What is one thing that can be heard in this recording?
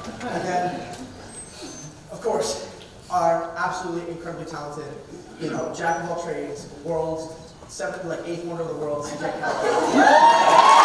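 A young man speaks into a microphone in a large hall.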